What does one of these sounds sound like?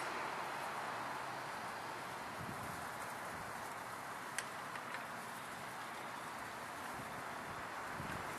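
Dry leaves rustle as elk dig through a pile.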